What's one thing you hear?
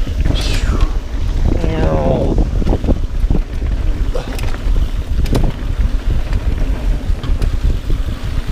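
Mountain bike tyres crunch and rattle over a dirt trail.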